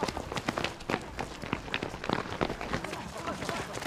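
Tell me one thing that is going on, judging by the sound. Many footsteps pound on hard ground.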